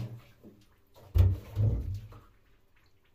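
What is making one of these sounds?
A plastic box thuds down heavily on the ground.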